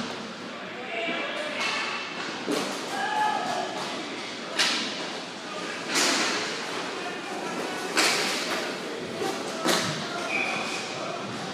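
Players' skate wheels roll and scrape across a hard floor in a large echoing hall.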